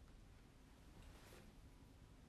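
A sheet of paper rustles briefly.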